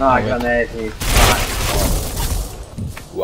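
A loud explosion booms close by.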